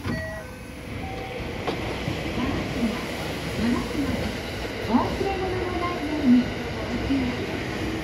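A steady murmur of a busy station fills the air.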